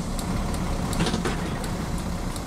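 Bus doors open with a hiss of air.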